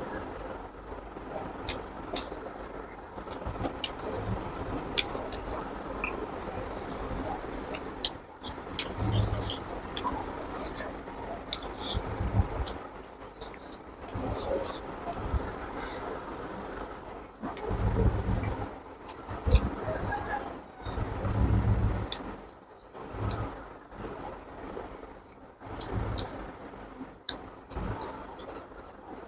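A young man chews food wetly and smacks his lips close to a microphone.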